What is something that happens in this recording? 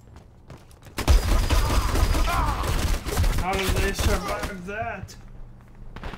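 A rifle fires loud rapid bursts of gunshots.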